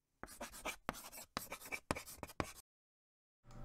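Chalk taps and scratches on a chalkboard.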